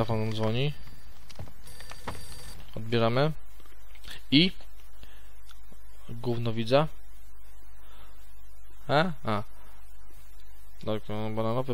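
A man speaks calmly into a close headset microphone.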